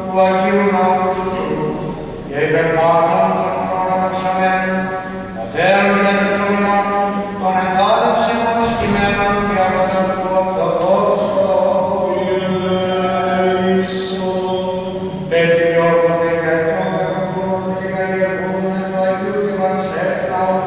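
A man chants in a slow, sustained melody, echoing through a large reverberant hall.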